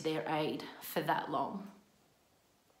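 A young woman speaks calmly and close by, heard through a microphone.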